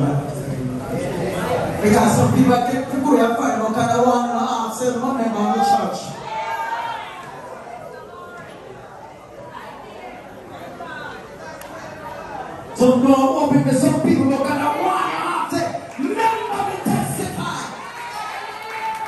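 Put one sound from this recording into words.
A woman sings loudly into a microphone through loudspeakers in an echoing hall.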